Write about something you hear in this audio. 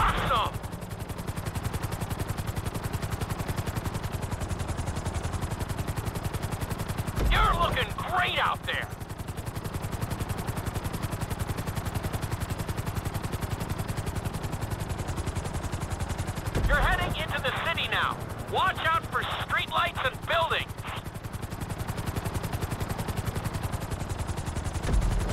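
A helicopter's rotor chops steadily overhead.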